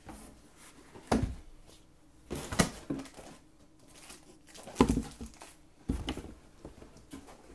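Cardboard flaps bump and scrape.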